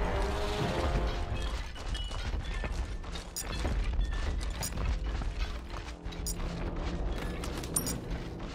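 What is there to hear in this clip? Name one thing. Heavy footsteps thud quickly as a warrior runs.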